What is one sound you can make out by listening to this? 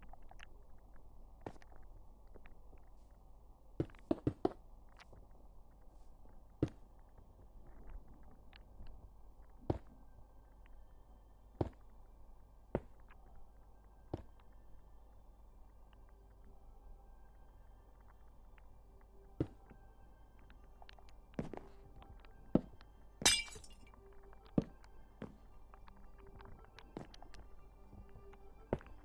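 Blocks are placed with soft, dull knocks, now and then.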